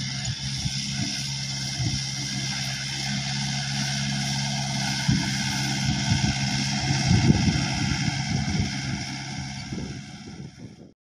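A tractor engine rumbles steadily as it drives closer.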